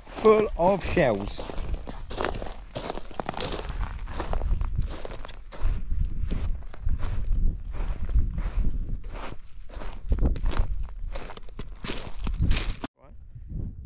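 Footsteps crunch on loose pebbles.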